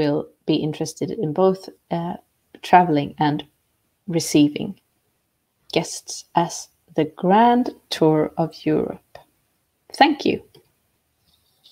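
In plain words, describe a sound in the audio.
A middle-aged woman speaks calmly through an online call microphone.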